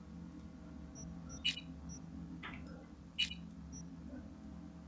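Short electronic menu beeps chirp as options are selected.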